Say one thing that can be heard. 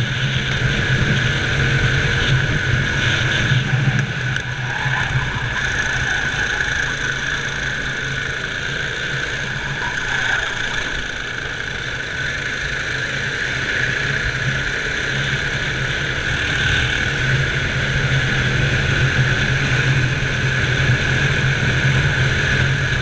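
A go-kart engine drones loudly and steadily up close, rising and falling with the throttle.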